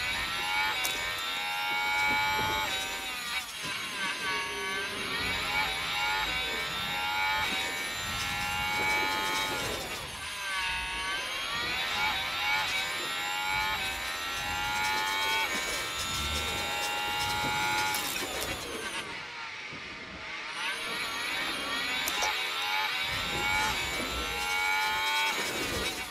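A racing car engine whines at high revs, rising and falling as it shifts gears.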